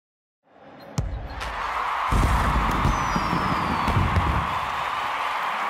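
Fireworks pop and bang overhead.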